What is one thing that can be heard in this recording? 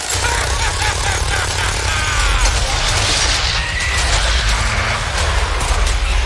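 A mounted machine gun fires in a rapid rattling burst.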